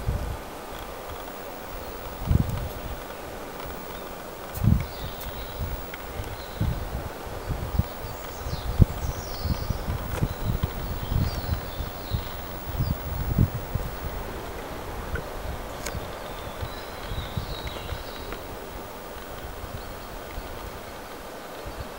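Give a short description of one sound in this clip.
A snake slithers through dry twigs and leaves.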